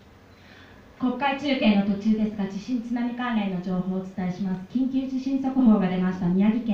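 A woman speaks into a microphone in a dramatic, sing-song voice through a loudspeaker.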